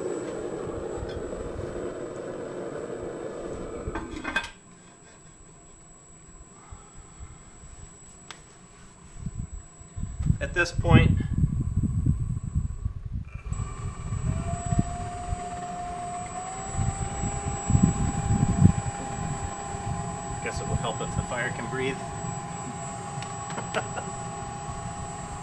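A gas burner roars steadily inside a furnace.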